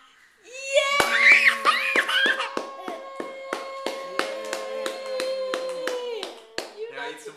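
A toddler giggles with a long squeal through covered lips.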